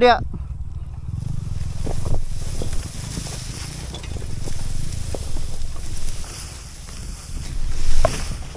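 A dirt bike engine rumbles low and steady close by.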